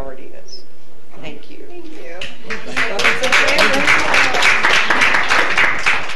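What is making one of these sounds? A middle-aged woman speaks warmly into a microphone.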